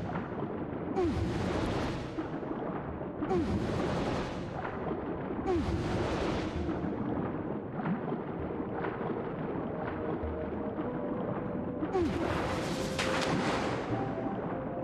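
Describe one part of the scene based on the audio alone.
Water whooshes in bursts with each swimming stroke.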